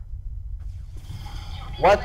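Laser weapons fire in short bursts.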